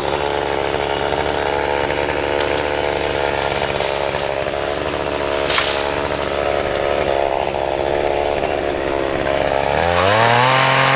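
A chainsaw engine runs steadily at a low idle.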